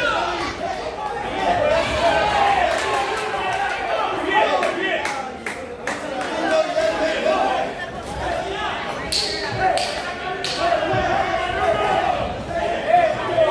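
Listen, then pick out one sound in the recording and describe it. A crowd shouts and cheers loudly in an echoing hall.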